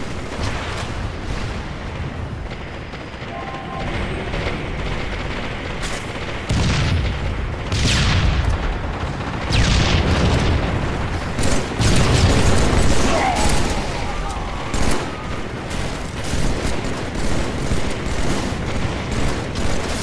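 Gunfire and explosions crack and boom from a video game.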